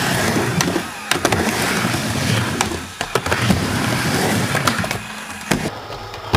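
Skateboard wheels roll and rumble across a wooden ramp.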